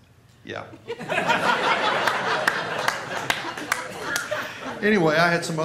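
An audience laughs loudly.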